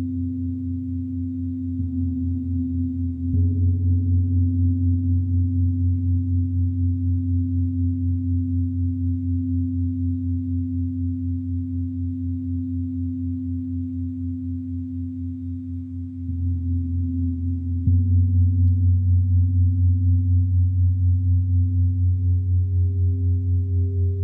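Large gongs are struck with soft mallets and ring out with a deep, swelling hum.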